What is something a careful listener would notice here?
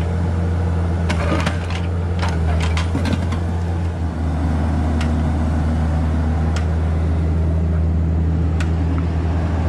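Stones and rocks knock and clatter against an excavator bucket.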